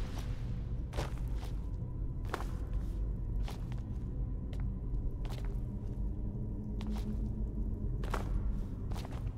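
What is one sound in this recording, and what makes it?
Footsteps tread on stone at a steady pace.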